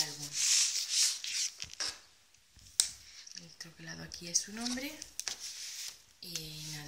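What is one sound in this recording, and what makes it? A paper-covered box rustles and taps as it is handled.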